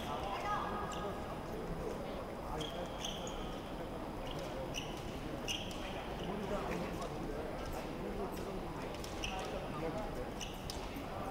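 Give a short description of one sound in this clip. Fencers' shoes squeak and stamp on a metal fencing piste.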